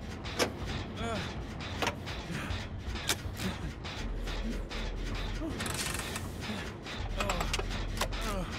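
Metal parts of an engine clink and rattle as it is worked on.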